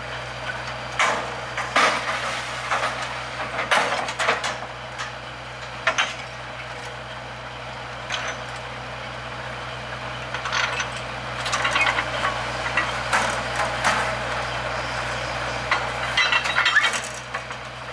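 Metal parts clank and knock on a drilling rig.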